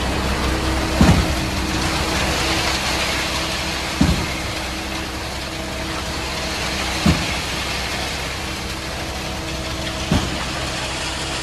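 A diesel engine hums steadily close by.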